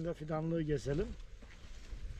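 A middle-aged man speaks calmly outdoors, close by.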